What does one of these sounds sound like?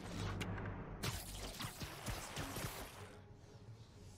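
A rope line zips and a rush of air whooshes past.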